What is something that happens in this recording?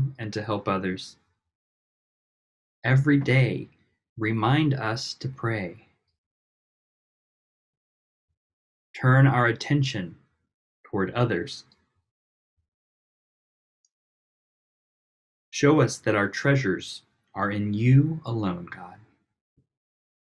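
An elderly woman speaks calmly in short phrases, with pauses between them.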